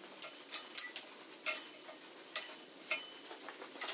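Metal parts clank and tap sharply, close by.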